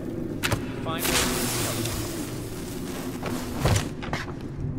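A flare ignites and hisses loudly.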